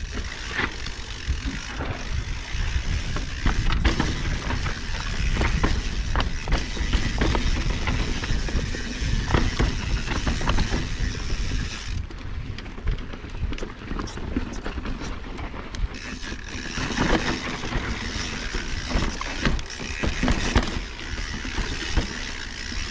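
Wind rushes across a microphone outdoors.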